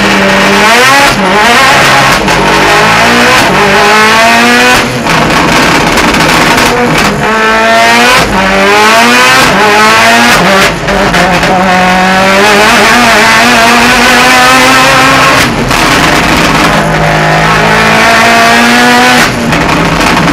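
Quick gearshifts briefly cut a race car engine's roar.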